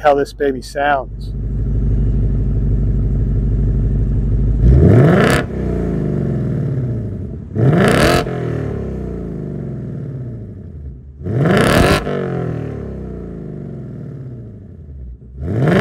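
A car engine idles with a deep, steady exhaust rumble close by.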